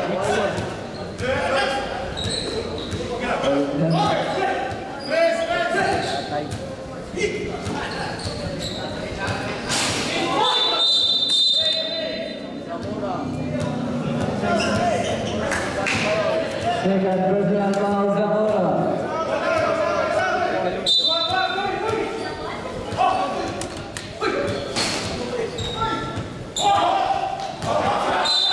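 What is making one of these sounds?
A crowd of young men and women shout and cheer in a large echoing hall.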